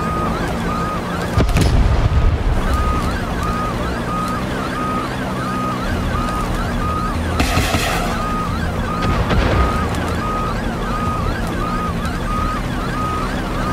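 A helicopter's rotor thumps steadily from inside the cabin.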